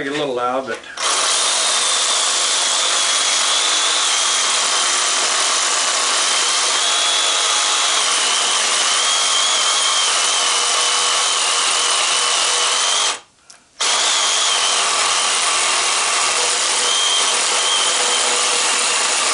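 A reciprocating saw buzzes loudly, cutting through metal.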